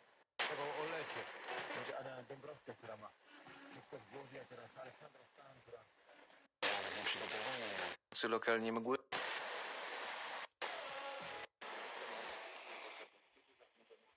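A small radio plays snatches of sound that change abruptly as it is tuned between stations.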